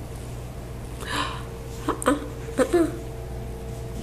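A kitten mews softly a few times.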